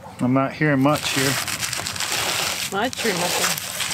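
A metal tool scrapes and crackles against a wooden hive.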